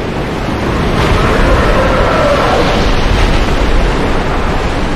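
A huge creature lets out a deep, rumbling roar.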